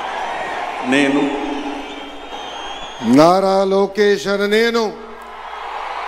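A man speaks with feeling into a microphone, heard through loudspeakers outdoors.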